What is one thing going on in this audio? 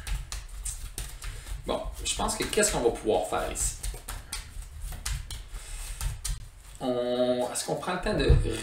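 Playing cards shuffle and slide on a table.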